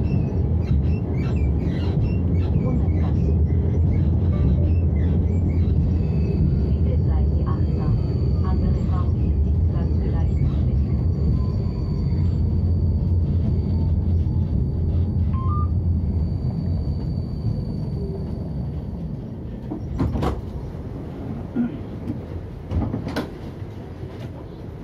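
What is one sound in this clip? A tram rumbles steadily along its rails, then quietens.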